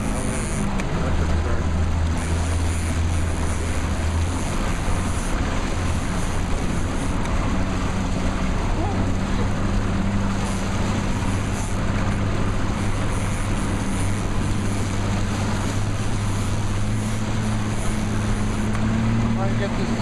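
Water rushes and churns loudly over a weir.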